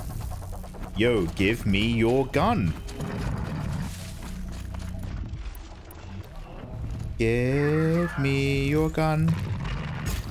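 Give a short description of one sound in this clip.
A man talks close into a microphone.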